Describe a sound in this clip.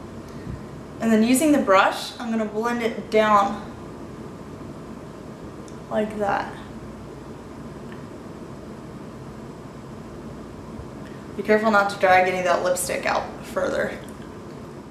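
A young woman speaks calmly and close to the microphone, in short bursts.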